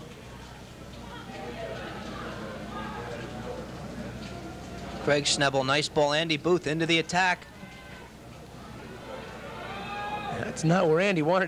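A small crowd of spectators murmurs and cheers outdoors.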